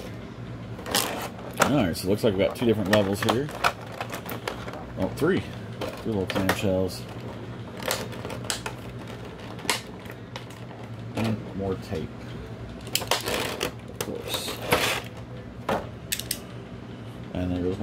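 Stiff plastic packaging crinkles and clicks as it is handled.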